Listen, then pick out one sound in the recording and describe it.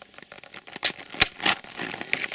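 A ski boot knocks and clicks against a metal binding.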